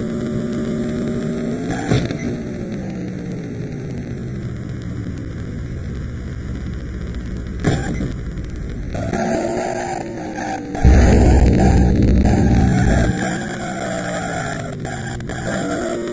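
A video game car engine drones and whines, shifting in pitch as the car speeds along.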